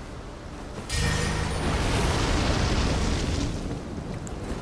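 A fire spell roars and crackles in a burst.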